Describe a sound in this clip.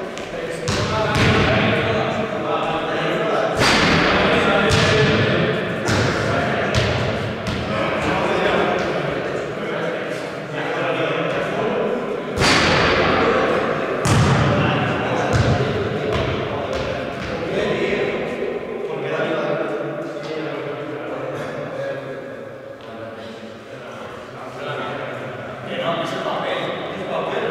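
Young men talk calmly nearby in an echoing hall.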